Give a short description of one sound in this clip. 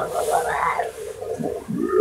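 A hand rustles soft fabric.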